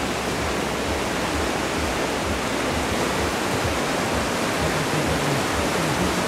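White water rushes and churns loudly down a channel.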